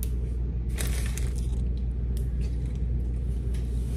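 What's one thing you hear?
A young woman gulps water from a bottle.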